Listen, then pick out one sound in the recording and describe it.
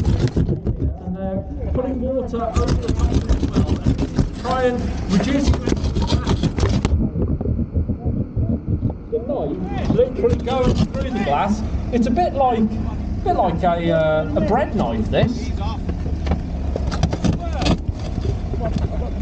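Men talk to each other loudly outdoors.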